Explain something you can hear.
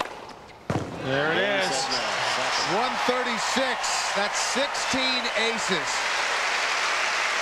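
A stadium crowd applauds.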